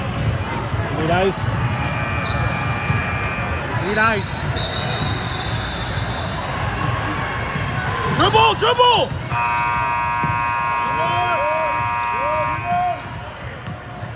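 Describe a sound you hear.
Sneakers squeak sharply on a court in a large echoing hall.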